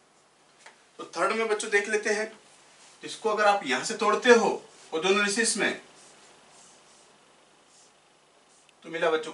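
A man speaks calmly, close to a microphone, explaining in short bursts.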